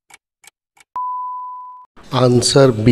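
A timer beeps once when the countdown ends.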